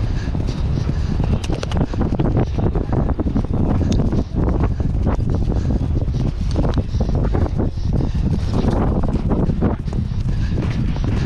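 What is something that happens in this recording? Hooves pound rapidly on turf close by.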